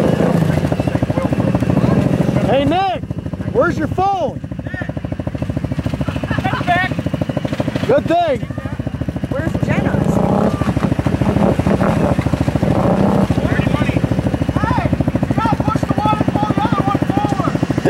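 An engine idles with a steady, rapid chugging.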